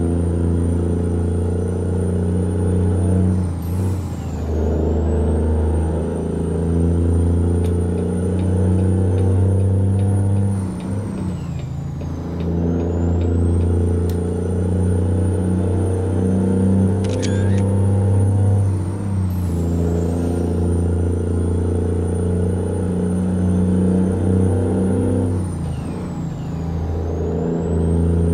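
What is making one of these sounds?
A truck's diesel engine drones steadily, shifting pitch every few seconds as gears change.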